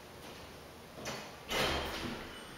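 Elevator doors slide shut.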